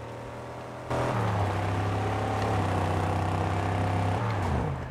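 A buggy engine drones steadily as it drives over sand.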